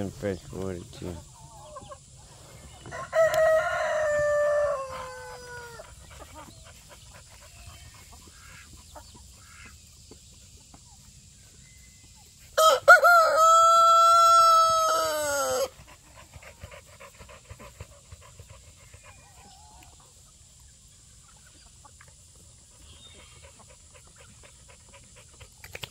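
Hens cluck softly.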